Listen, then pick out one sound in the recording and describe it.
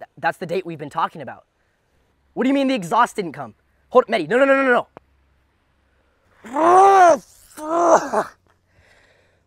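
A young man talks into a phone with animation, close by outdoors.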